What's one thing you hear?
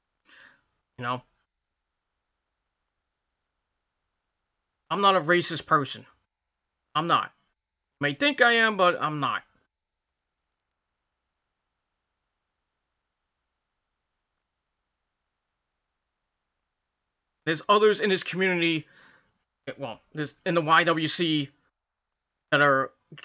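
A man speaks calmly in short bursts, close to a microphone, with long pauses between.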